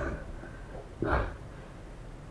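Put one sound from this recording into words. A man falls heavily to the floor.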